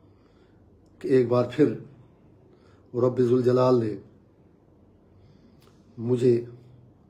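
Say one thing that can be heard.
An elderly man speaks calmly and slowly close by, in short bursts with pauses.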